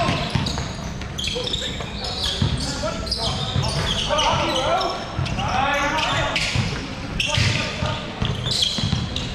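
A basketball bounces on the floor with echoing thuds.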